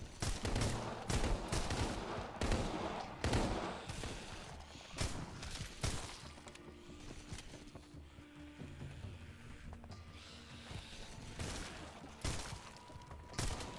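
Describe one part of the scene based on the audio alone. A bat thuds heavily against bodies.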